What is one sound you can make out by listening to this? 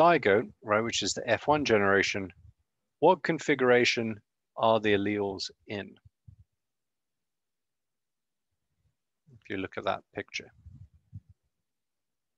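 A man speaks calmly into a nearby microphone, explaining with pauses.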